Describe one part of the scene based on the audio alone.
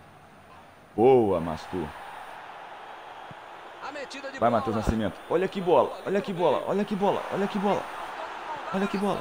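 A stadium crowd cheers in a steady roar.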